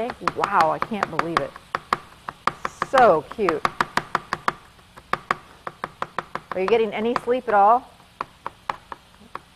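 A knife chops rapidly on a cutting board.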